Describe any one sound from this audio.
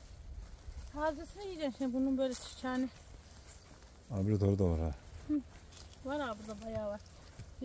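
An elderly woman talks calmly, close by.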